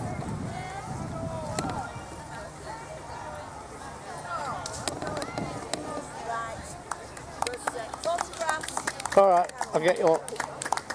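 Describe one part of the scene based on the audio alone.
Several men and women chat outdoors at a distance.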